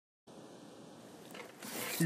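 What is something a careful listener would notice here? A book slides out of a shelf.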